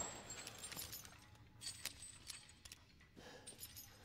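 A pistol is reloaded with metallic clicks.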